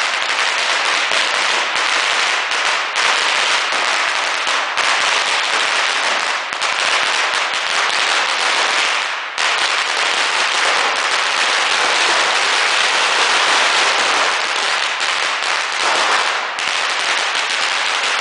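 A long string of firecrackers crackles and bangs rapidly outdoors, echoing off the buildings.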